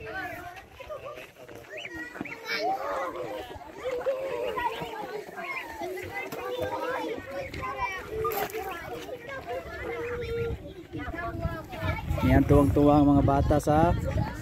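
Young children talk and call out excitedly nearby.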